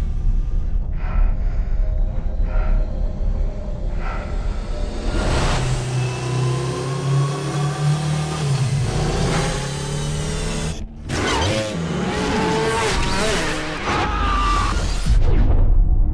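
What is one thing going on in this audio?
A motorbike engine whines and roars at high speed, its pitch rising and falling.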